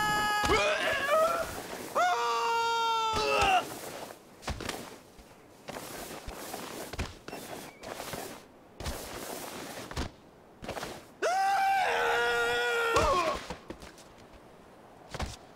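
A body thuds and tumbles against rock.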